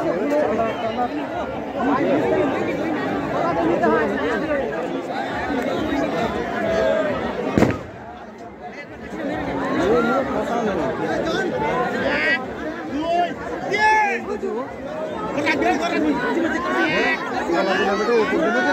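A large outdoor crowd shouts and cheers.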